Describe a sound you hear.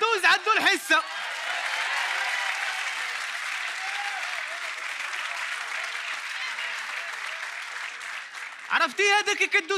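An audience laughs and claps in a large hall.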